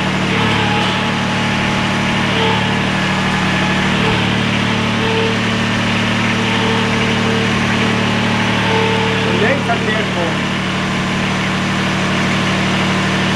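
A mower engine idles with a steady low hum.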